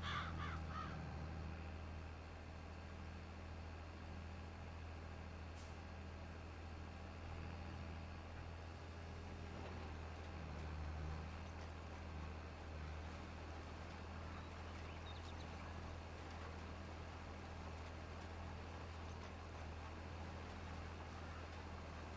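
A seed drill rattles over the soil.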